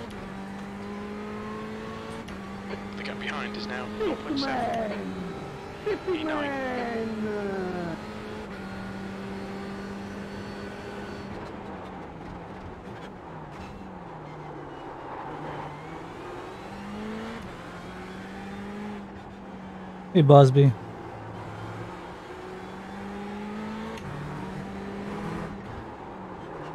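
A racing car engine hums steadily, revving up and down through gear changes.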